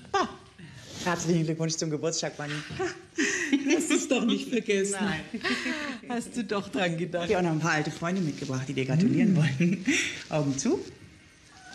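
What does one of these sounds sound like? A woman talks warmly and excitedly close by.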